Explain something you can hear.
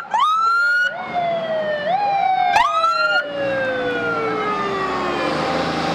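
A fire truck siren wails nearby, sweeping up and down.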